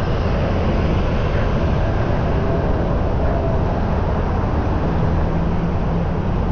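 Wind rumbles steadily against the microphone while riding outdoors.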